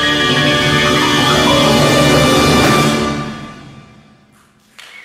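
A large wind band plays a loud final chord that dies away in an echoing hall.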